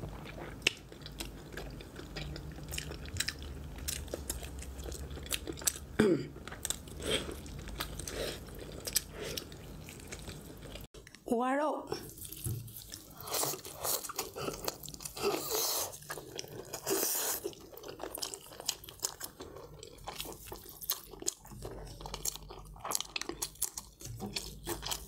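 A young woman chews and crunches food close to a microphone.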